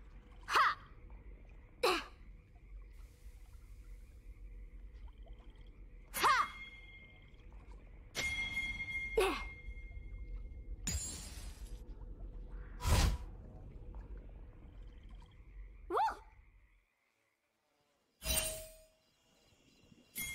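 Spell effects whoosh and crackle in short bursts.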